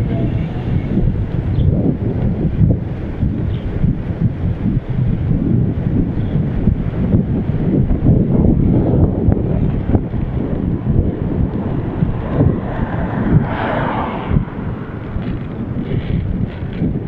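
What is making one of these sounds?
Bicycle tyres roll and rattle over the road.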